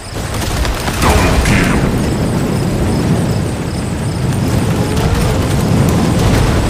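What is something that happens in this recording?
Game music plays with a steady beat.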